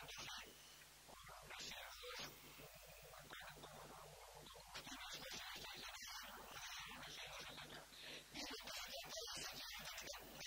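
A man speaks steadily into a microphone, heard through loudspeakers in a large echoing hall.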